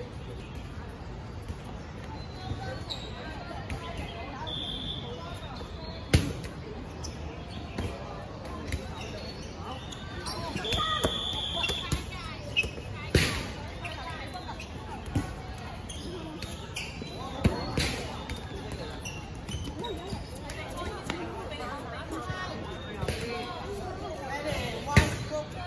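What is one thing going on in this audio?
Young women chatter and call out nearby, outdoors.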